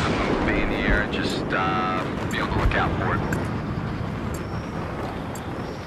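A rifle fires in quick bursts.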